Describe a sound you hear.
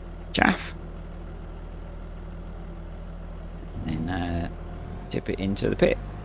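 A tractor engine idles with a low, steady hum.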